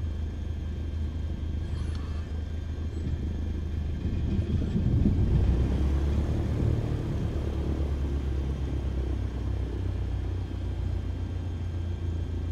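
The piston engine of a single-engine propeller plane drones as the plane taxis, heard from inside the cockpit.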